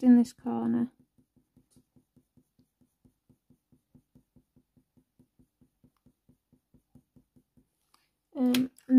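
A pencil scratches lightly on paper in short, quick strokes.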